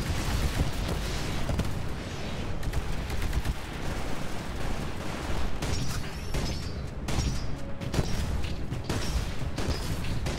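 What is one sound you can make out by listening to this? Heavy mechanical footsteps thud and clank.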